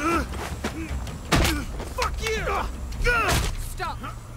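A young woman grunts and gasps as she struggles.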